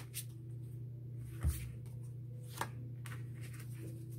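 A card is laid down on a table with a soft slap.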